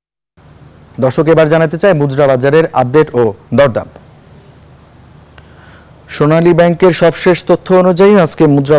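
A man speaks clearly and evenly into a microphone, like a news presenter.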